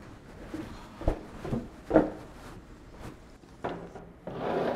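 Metal clunks and knocks inside a small lift.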